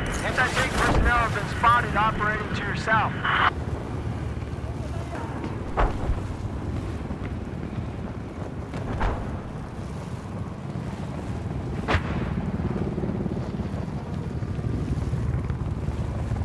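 Wind rushes steadily past during a fall through the air.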